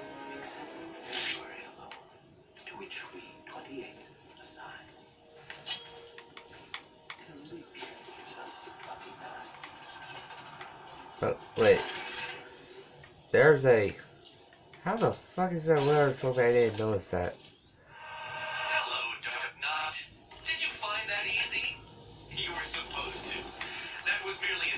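A video game's sound effects and music play from a television in the room.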